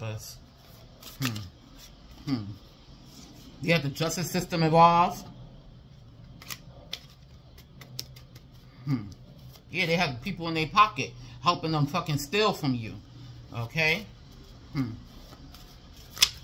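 Paper cards rustle and flick in hands.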